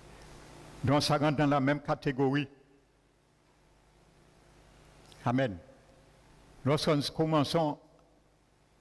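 An elderly man speaks with animation through a microphone.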